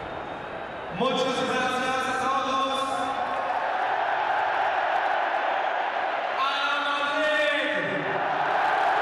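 A young man shouts into a microphone, booming over loudspeakers.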